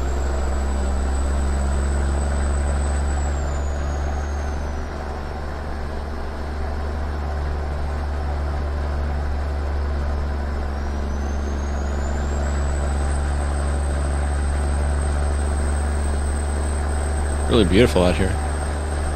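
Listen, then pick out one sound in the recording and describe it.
A truck engine drones steadily with a deep rumble, dipping slightly and then rising again.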